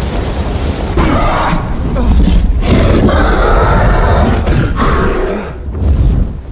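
A huge creature roars loudly and harshly.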